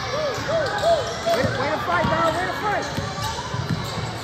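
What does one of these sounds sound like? A basketball bounces with dull thumps as it is dribbled.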